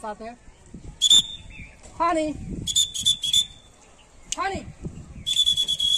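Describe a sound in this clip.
A young man blows a bird-call whistle in sharp bursts.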